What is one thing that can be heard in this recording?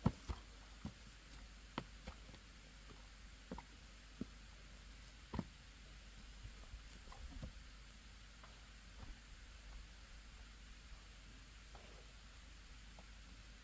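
Footsteps scuff and crunch on a grassy dirt slope outdoors.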